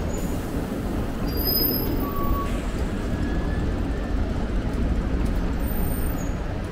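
A city bus engine rumbles close by.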